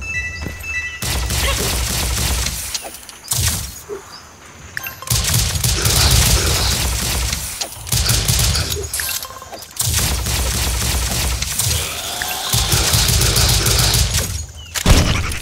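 Rapid gunfire blasts in long, loud bursts.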